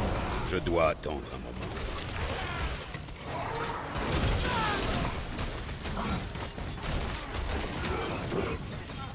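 Game combat sounds of blows and magic effects clash and crackle.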